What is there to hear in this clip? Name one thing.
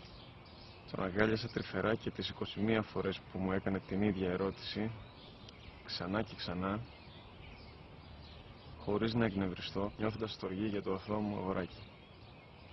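A man reads aloud calmly, close by.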